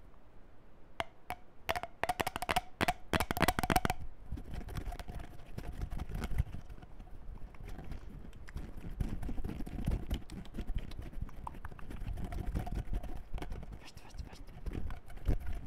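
Plastic objects click and tap against a microphone.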